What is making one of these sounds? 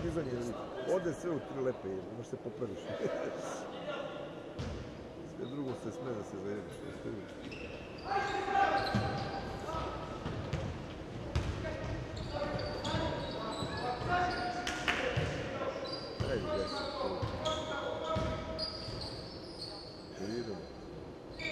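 Young players call out to each other in a large echoing hall.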